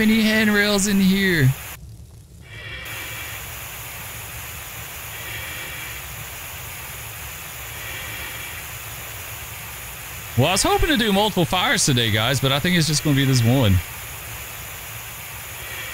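A fire hose sprays water with a steady hiss.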